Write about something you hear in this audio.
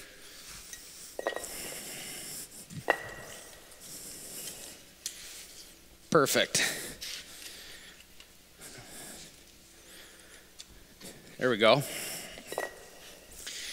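A heavy stone block knocks and scrapes as it is set down on other blocks.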